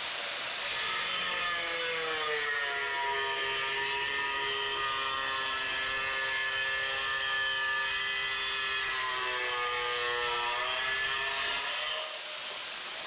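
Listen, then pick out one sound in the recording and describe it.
An angle grinder cuts through ceramic tile with a harsh, strained grinding.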